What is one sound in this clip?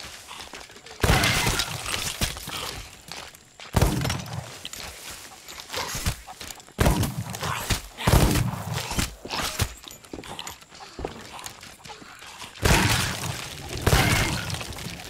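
A blunderbuss fires loud booming shots.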